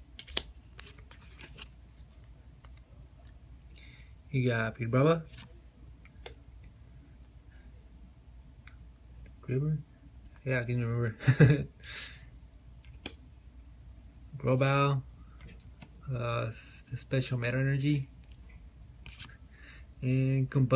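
Trading cards shuffle and slide against one another in hand.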